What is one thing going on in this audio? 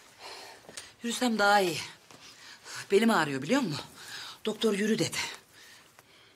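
A middle-aged woman speaks emotionally, close by.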